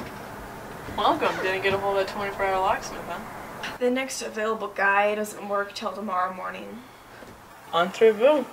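A young woman speaks in a quiet, serious voice.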